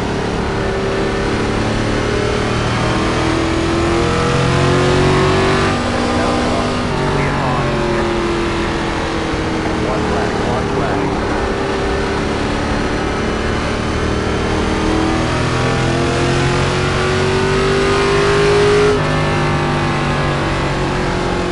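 A race car engine roars steadily, rising and falling in pitch as it shifts gears.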